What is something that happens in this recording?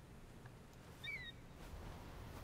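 An eagle gives a short, high screech.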